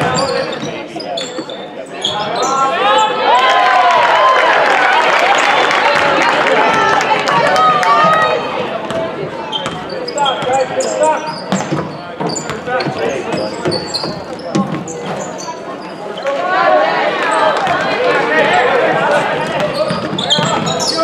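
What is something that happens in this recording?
A basketball bounces on a hardwood floor with echoing thuds.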